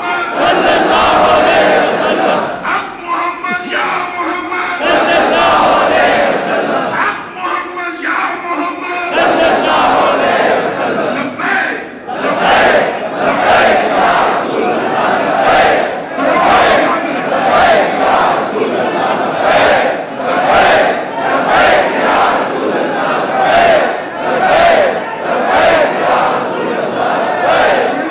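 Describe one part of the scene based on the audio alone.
A large crowd of men chants loudly together in a big echoing hall.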